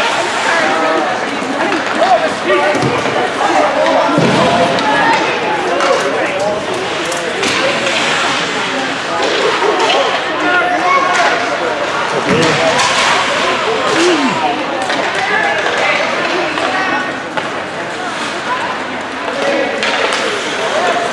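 Spectators chatter and call out nearby in a large echoing rink.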